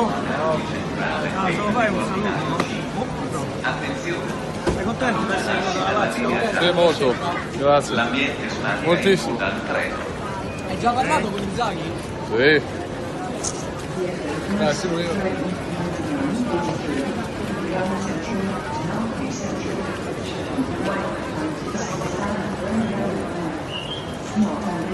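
A crowd of people talk and call out close by, echoing under a large roof.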